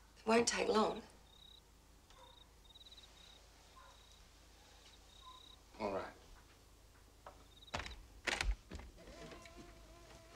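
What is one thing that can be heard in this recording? A woman speaks quietly and tensely nearby.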